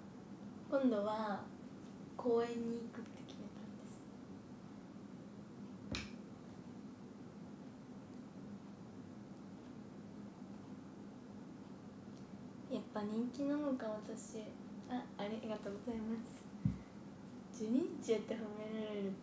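A young woman speaks casually and close by, with pauses between phrases.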